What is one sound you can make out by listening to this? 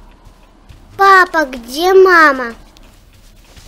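A young child cries loudly.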